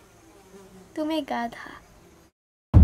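A young girl speaks softly and close by.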